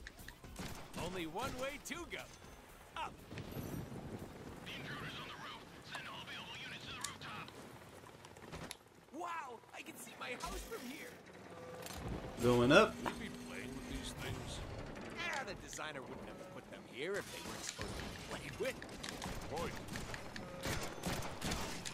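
Guns fire in quick bursts of sharp shots.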